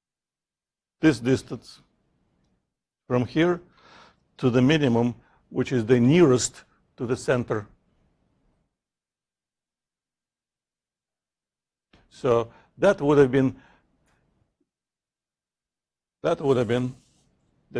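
A man speaks calmly in bursts, with pauses.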